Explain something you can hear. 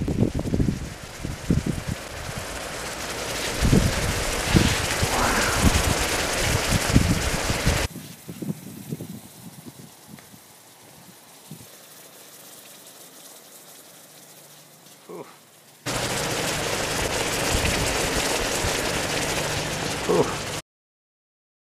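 Bubbles pop and crackle in a hot pan.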